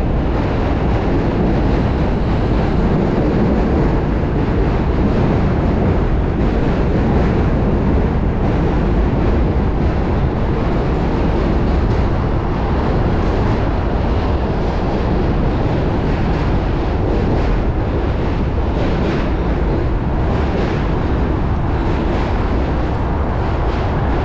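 Wind rushes loudly past a moving bicycle.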